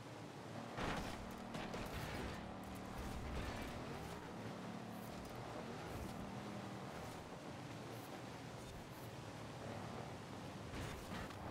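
Tyres hiss and slide over snow.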